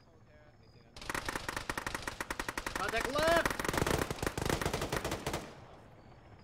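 Rapid gunfire rattles in quick bursts close by.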